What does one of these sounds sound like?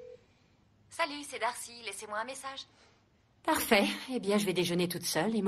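A woman speaks calmly into a phone.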